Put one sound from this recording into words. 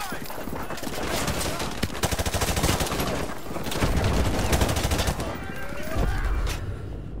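A rifle fires rapid bursts up close.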